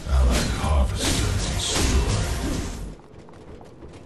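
Loud fiery blasts and explosions crackle in a fight.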